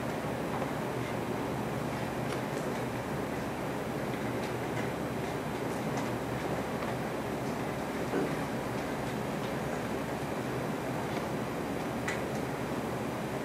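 An elderly man reads aloud steadily into a microphone.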